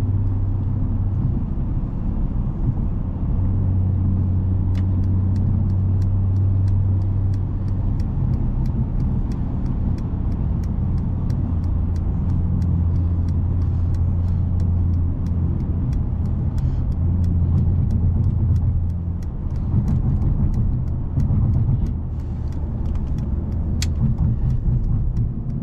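Tyres roar on asphalt at highway speed, heard from inside a car.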